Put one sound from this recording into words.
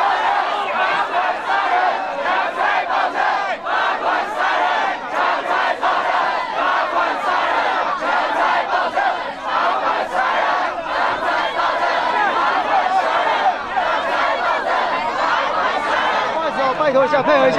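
A crowd shouts and clamours close by.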